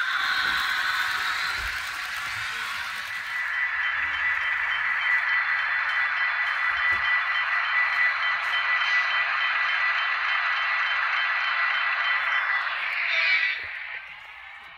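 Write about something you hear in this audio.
A model train's motor whirs steadily as it rolls along the track.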